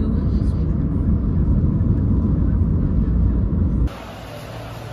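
Road traffic rumbles loudly as a truck drives by.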